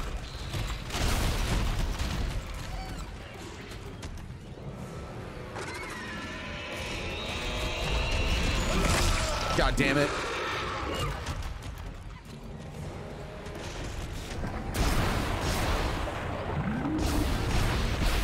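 A creature screeches.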